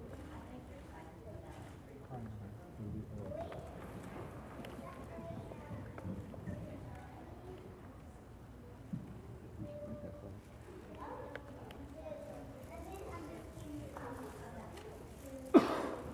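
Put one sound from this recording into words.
Children chatter and call out in a large echoing hall.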